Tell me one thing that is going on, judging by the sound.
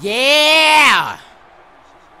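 A man lets out a loud, drawn-out yell close to a microphone.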